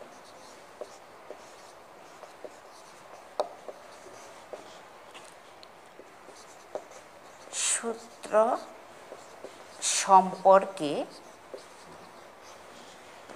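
A marker scratches and taps on a whiteboard.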